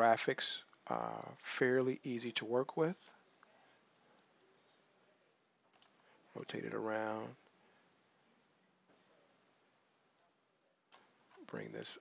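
A man talks calmly and casually into a close microphone, in short bursts with pauses.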